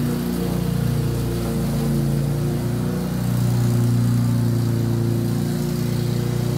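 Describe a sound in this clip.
A lawn mower engine drones steadily nearby.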